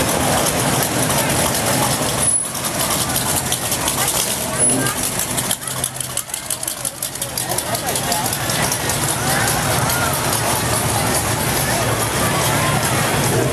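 A crowd of people chatters outdoors nearby.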